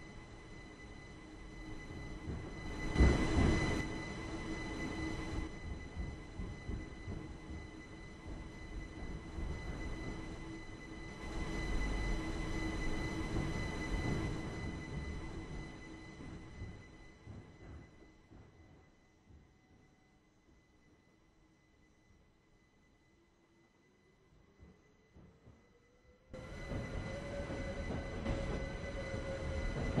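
A train rumbles along the track.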